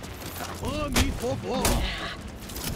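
Metal swords clash and ring.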